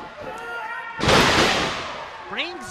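A wrestler's body slams hard onto the ring mat.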